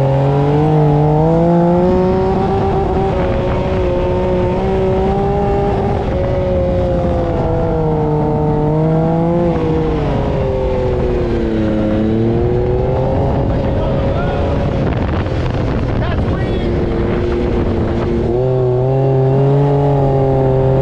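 A buggy engine roars, rising and falling in pitch as it revs.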